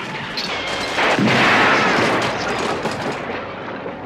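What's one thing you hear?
A machine gun fires loud rapid bursts.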